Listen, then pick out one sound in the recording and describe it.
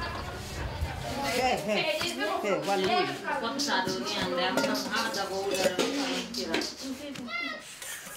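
Women and children talk and chatter nearby.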